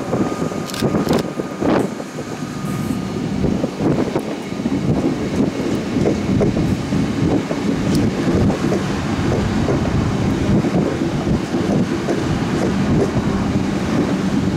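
A train rolls past, its wheels clattering on the rails.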